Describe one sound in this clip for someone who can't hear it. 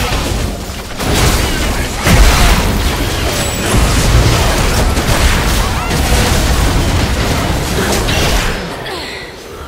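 Spell blasts and sword strikes crash and clash in a fast fight.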